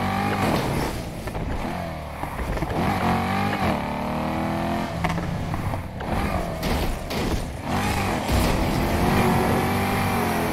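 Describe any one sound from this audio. Tyres screech on the road as a car drifts.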